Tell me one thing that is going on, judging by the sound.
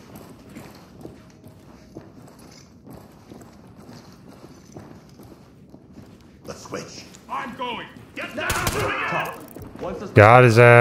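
Footsteps thud on wooden stairs and floorboards.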